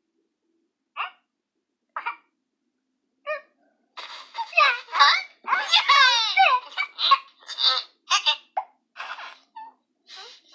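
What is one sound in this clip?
Cheerful game jingles and chimes play from small phone speakers.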